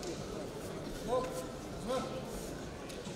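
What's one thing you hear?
A man calls out loudly across the hall.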